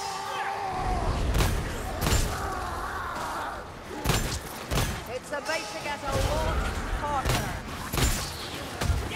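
A gun fires sharp, loud shots.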